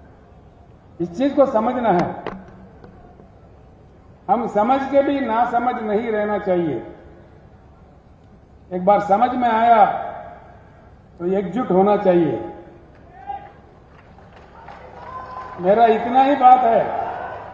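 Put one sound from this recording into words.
An older man speaks forcefully into a microphone over a loudspeaker, in bursts with pauses.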